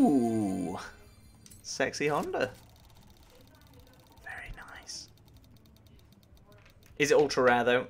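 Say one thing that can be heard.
A game's prize wheel spins with quick ticking.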